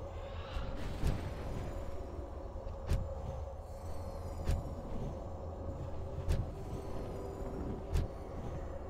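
Spell effects crackle and boom in a game battle.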